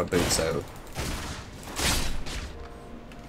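Spells whoosh and crackle in a fantasy battle.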